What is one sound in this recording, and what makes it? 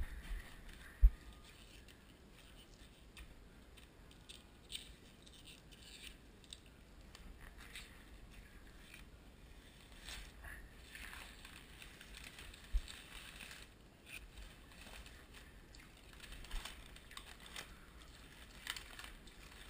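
Plastic sheeting crinkles and rustles under hands.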